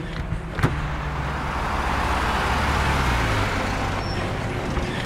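A bus engine roars as a bus drives past close by.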